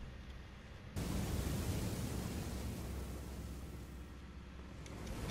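Fire roars in a burst of flame.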